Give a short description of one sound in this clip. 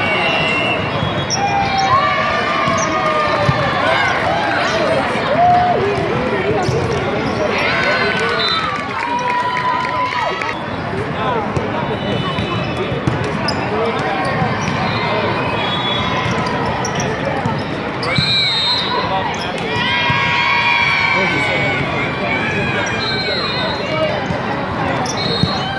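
Young women on the court shout and call to one another.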